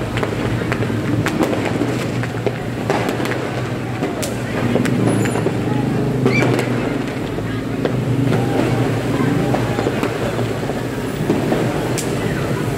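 Fireworks pop and crackle in the distance.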